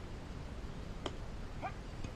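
A bat cracks against a ball once.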